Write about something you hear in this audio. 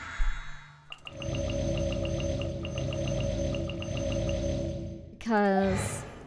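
A bright magical chime hums steadily.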